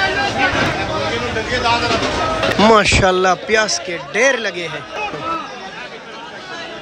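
A crowd of men talk and call out all around.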